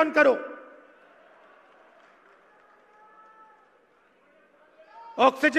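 A man speaks forcefully into a microphone over loudspeakers, echoing outdoors.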